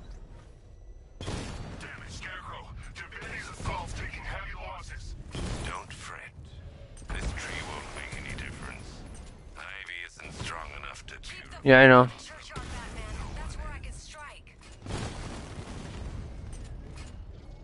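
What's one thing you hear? Cannon shots and explosions boom nearby.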